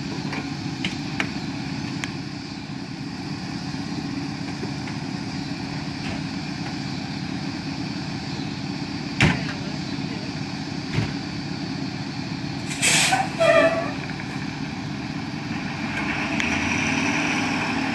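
A fire engine's diesel engine idles with a steady low rumble.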